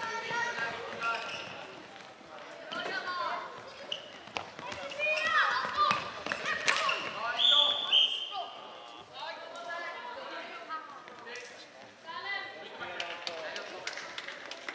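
Children shout and call out with animation in a large echoing hall.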